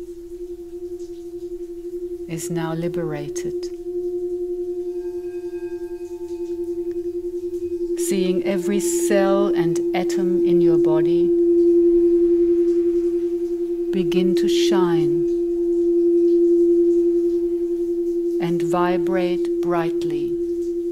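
A crystal singing bowl hums a steady, ringing tone.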